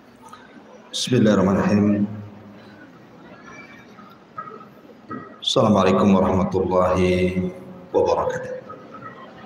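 A man sings a drawn-out chant close to a microphone.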